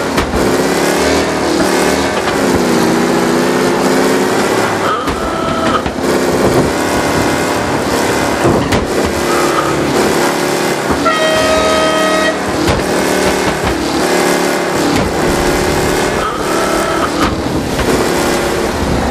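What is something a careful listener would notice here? A racing car engine roars steadily, rising and falling in pitch.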